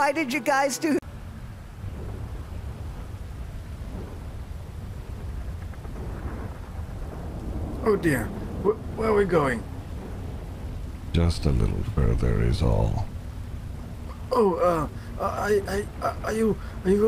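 Rushing water roars steadily nearby.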